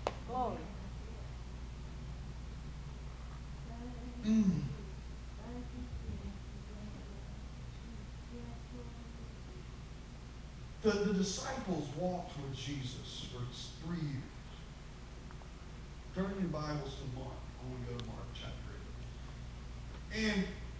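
A man speaks through a microphone in bursts, with pauses, in an echoing hall.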